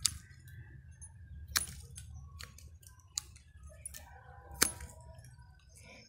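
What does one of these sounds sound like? Pruning shears snip through small branches with sharp clicks.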